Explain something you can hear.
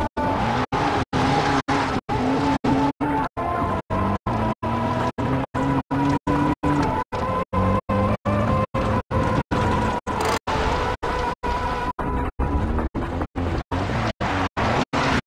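A car engine hums and revs, cutting out in short regular gaps.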